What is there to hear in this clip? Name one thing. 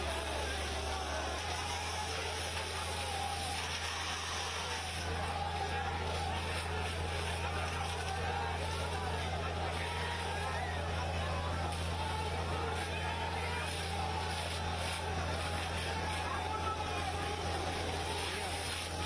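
A large crowd of men shouts and chants outdoors.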